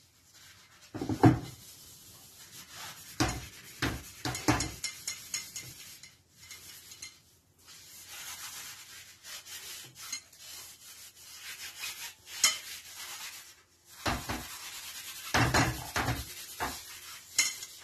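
A stick knocks against the rim of a bucket.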